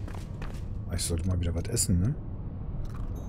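A man speaks casually close to a microphone.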